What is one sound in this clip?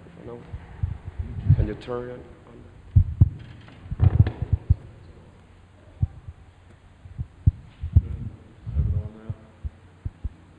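Thumps and bumps knock against a microphone.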